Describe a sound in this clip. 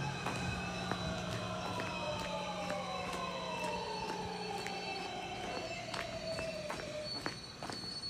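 A train pulls into the station with falling, squealing brakes.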